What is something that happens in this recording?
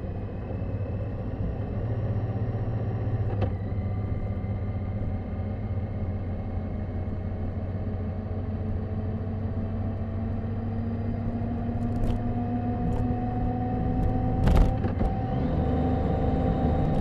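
A motorcycle engine hums steadily and slowly rises in pitch as it speeds up.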